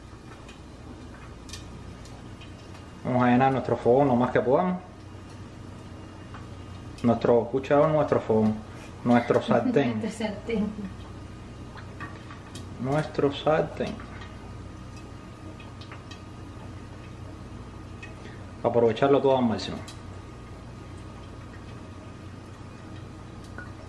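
Oil sizzles softly in a frying pan.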